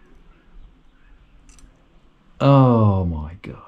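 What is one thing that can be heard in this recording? A metal gauge clicks softly against a bicycle chain.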